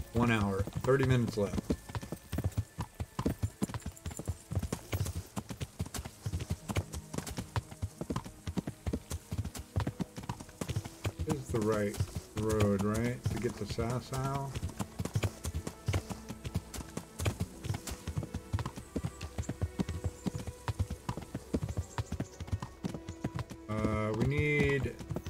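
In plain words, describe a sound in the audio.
A horse's hooves clop steadily on a dirt path.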